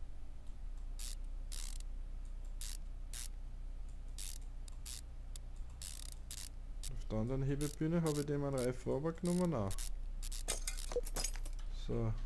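Short sharp clicks sound as bolts are unscrewed one after another.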